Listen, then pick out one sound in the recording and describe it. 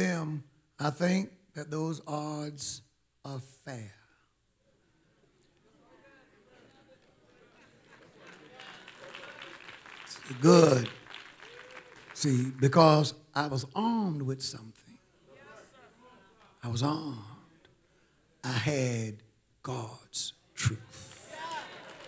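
A middle-aged man preaches forcefully into a microphone in a large echoing hall.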